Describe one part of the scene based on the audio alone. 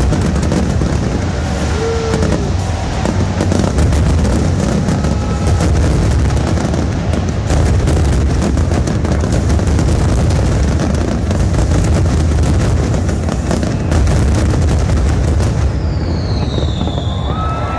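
Fireworks boom and crackle in rapid bursts outdoors.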